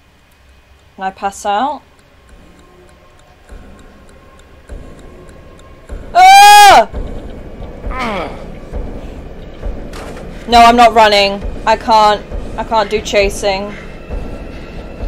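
A young woman cries out and talks with animation close to a microphone.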